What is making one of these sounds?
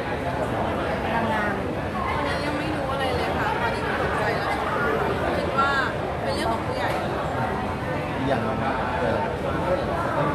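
A young woman answers questions calmly into a microphone.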